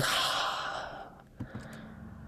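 A young man laughs softly close to a microphone.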